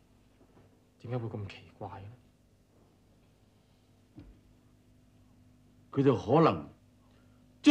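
A young man speaks firmly nearby.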